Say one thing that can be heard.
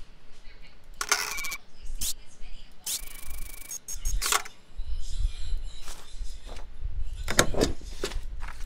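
Short electronic sound effects chime and click in bursts.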